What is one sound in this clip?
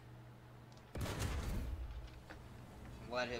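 A tank cannon fires with a loud, deep boom.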